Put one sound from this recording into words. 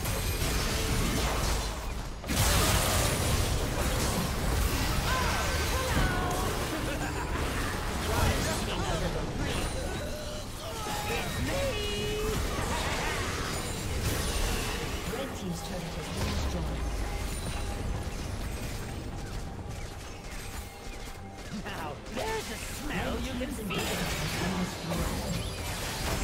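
Magic spells blast, whoosh and crackle in a busy fight.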